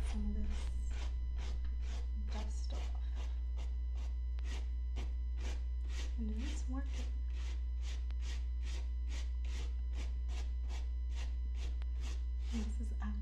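A cloth rubs briskly over a fabric bag in quick, even swishing strokes.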